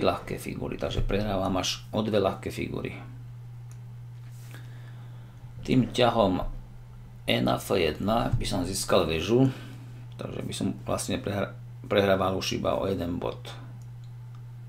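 A middle-aged man speaks calmly and close to a microphone, in short bursts.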